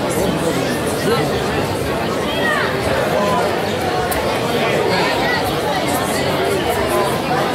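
A large crowd of men and women chatters busily outdoors.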